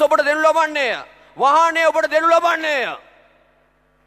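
A man calls out loudly and with strong feeling through a microphone.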